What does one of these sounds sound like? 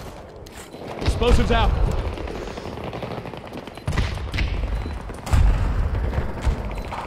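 Distant explosions rumble and boom.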